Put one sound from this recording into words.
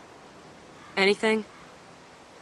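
A young woman speaks briefly and sharply.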